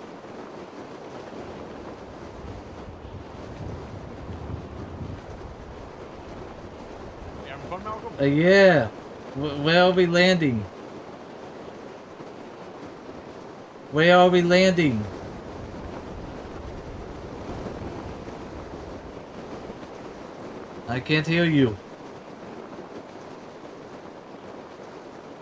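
Wind rushes steadily past a falling parachute.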